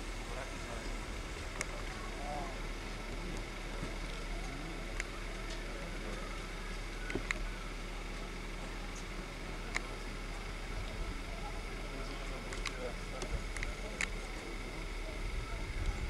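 Men talk outdoors, a few metres away.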